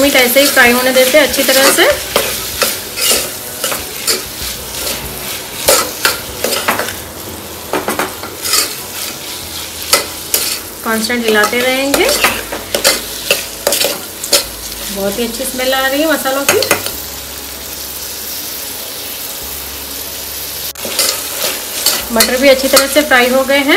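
A spatula scrapes and clatters against a metal pot as food is stirred.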